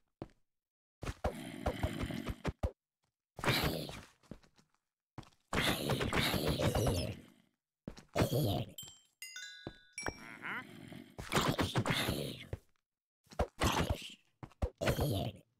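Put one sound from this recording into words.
Zombies groan and growl.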